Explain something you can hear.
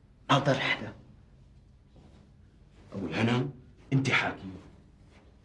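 Another man answers tensely, close by.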